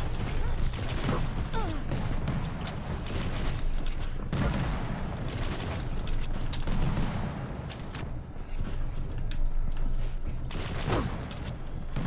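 Futuristic guns fire in rapid bursts.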